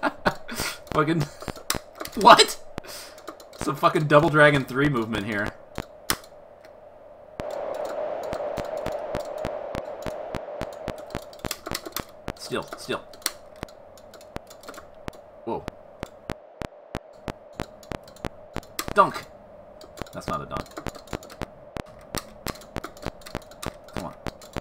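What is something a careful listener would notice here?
A video game basketball bounces with steady, rhythmic clicks.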